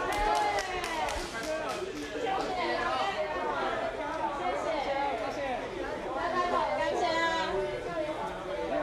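A crowd of men and women talk and call out over one another nearby.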